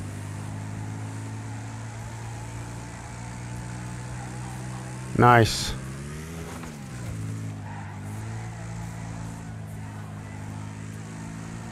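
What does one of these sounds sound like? A racing car engine drones steadily and dips in pitch as the car slides through a turn.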